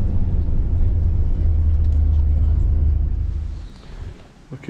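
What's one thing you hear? A bus engine rumbles low and loud.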